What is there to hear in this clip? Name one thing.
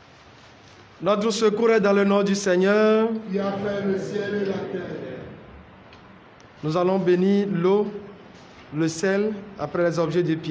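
A man sings into a microphone in a room with some echo.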